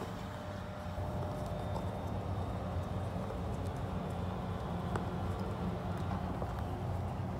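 Fabric of a backpack rustles as hands handle it.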